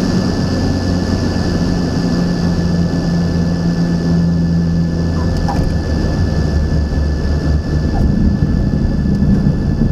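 A small propeller plane's engine roars loudly and steadily.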